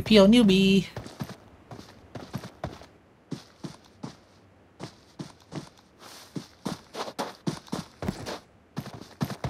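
Footsteps thud quickly on dry ground.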